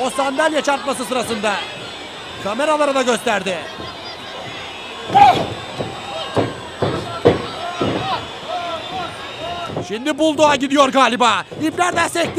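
A crowd of spectators chants loudly in a large echoing hall.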